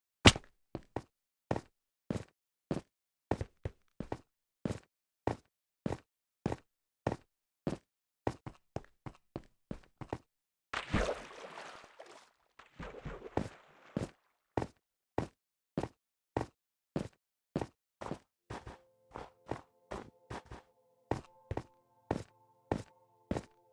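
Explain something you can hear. Footsteps crunch steadily on snow and ice.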